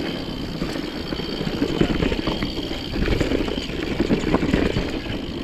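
Mountain bike tyres rumble and crunch over a rocky dirt trail.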